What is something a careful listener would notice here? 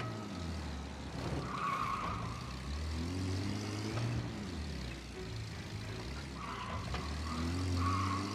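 A vintage car engine hums low and revs steadily.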